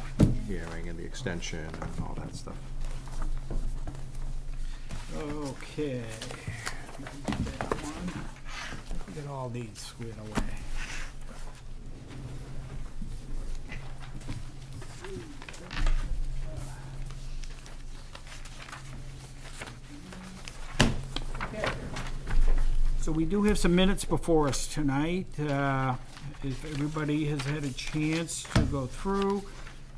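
A man speaks calmly into a microphone in a room.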